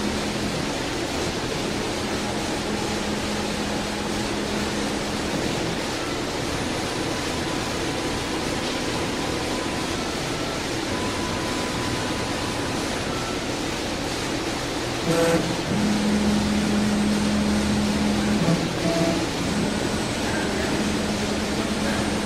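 A spindle motor whines and hums steadily.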